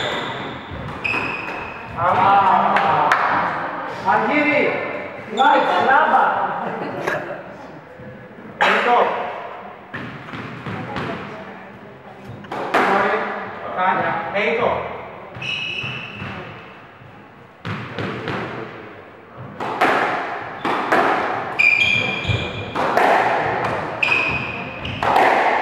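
Sports shoes squeak on the wooden floor.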